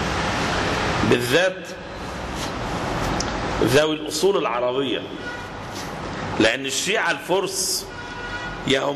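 A man speaks in a choked, tearful voice through a microphone.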